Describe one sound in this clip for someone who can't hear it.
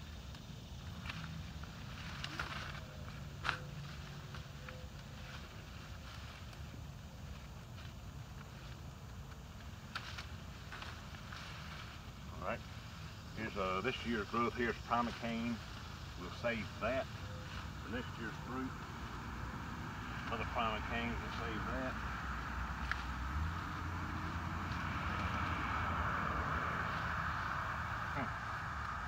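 Leafy branches rustle as a man pushes through them.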